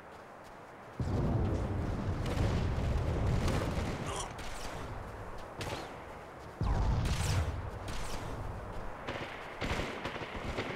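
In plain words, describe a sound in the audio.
Energy guns fire in rapid bursts.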